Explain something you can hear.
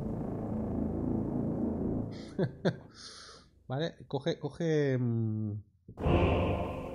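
A piano plays sustained chords.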